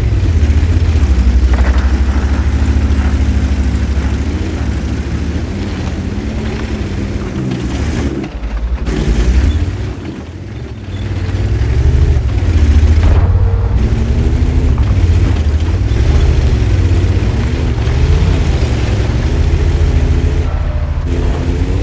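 A heavy tank engine rumbles loudly, rising and falling in pitch.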